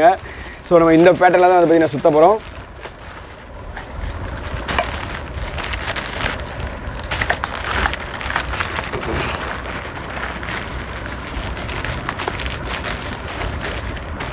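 Newspaper rustles and crinkles as it is folded and handled.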